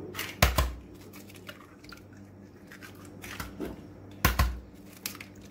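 An egg cracks against a bowl's rim.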